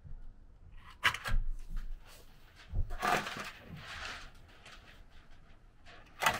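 Tin snips snip through thin metal.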